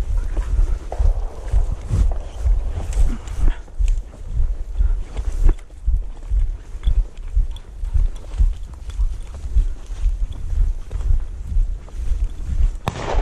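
Footsteps thud steadily through tall grass.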